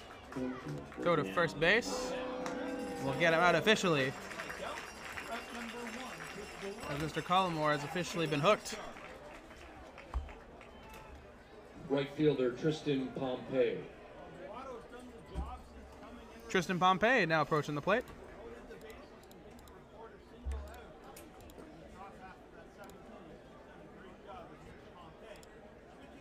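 A crowd murmurs in an outdoor stadium.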